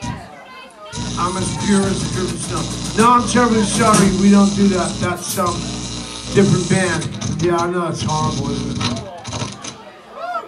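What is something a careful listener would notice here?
A rock band plays loudly with electric guitars and drums in a live room.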